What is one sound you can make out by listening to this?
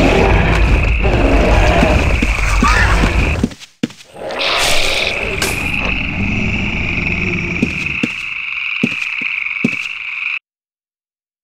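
Weapons strike in a fight with a dragon.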